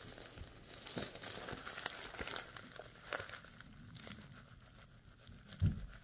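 A plastic packet crinkles in a woman's hands.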